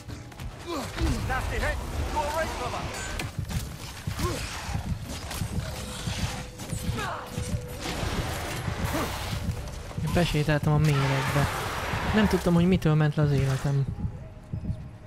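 Blows and clashes of a fierce fight thud and crack.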